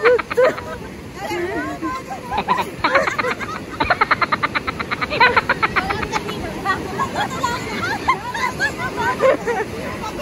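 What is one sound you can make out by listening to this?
Several women talk and shout excitedly close by.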